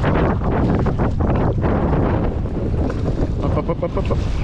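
A man wades through shallow water, splashing.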